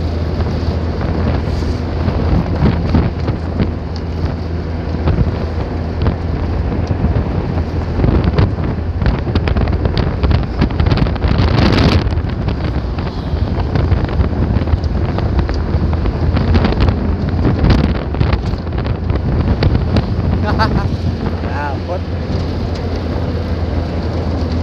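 A truck's empty bed rattles and clanks over the road.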